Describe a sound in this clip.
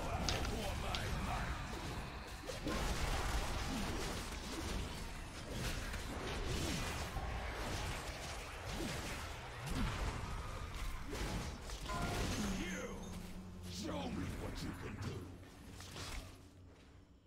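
Spell blasts and magical effects whoosh and crackle in a busy fantasy battle.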